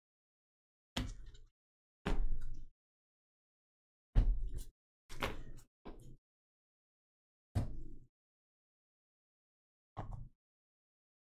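Gloved hands handle and shuffle trading cards.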